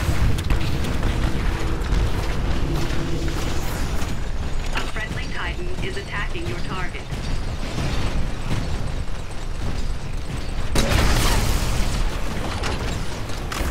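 Heavy metal footsteps stomp and clank.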